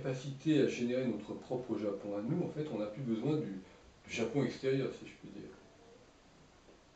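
An older man talks calmly and at length, close by.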